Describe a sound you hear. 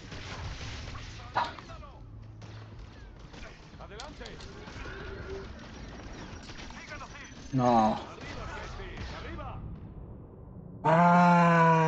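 Blaster shots ring out.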